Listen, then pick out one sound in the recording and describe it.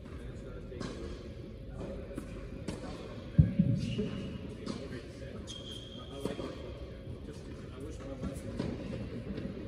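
Tennis balls are hit and bounce in a large echoing hall.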